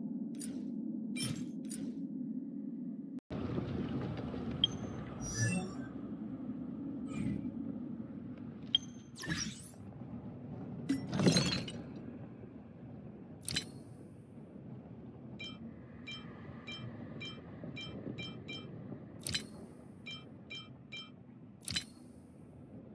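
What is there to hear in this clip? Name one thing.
Game menu clicks and chimes sound sharply now and then.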